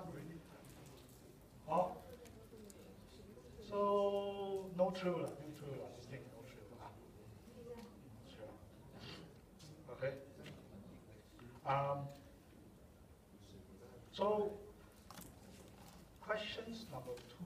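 A man lectures calmly from a distance in a large echoing hall.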